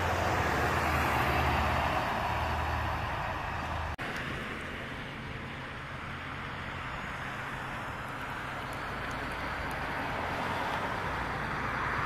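Tyres hiss on the road as cars pass.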